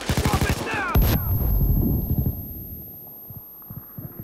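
A stun grenade goes off with a loud bang and a low rumble.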